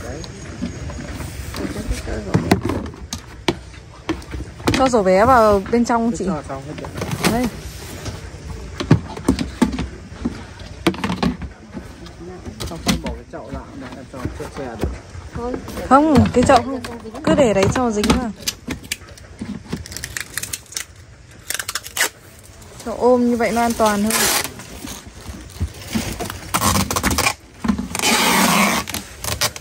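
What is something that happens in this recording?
Plastic basins and lids knock and clatter together.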